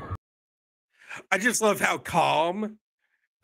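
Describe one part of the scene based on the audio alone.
A man laughs and talks with animation over an online call.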